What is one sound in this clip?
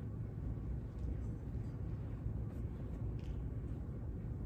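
A cloth rustles softly as it is unfolded.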